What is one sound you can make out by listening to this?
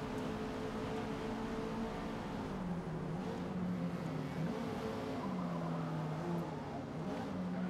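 A racing car engine roars at high revs and drops as it slows.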